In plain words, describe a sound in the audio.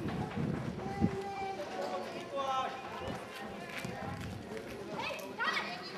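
A football thuds off a foot.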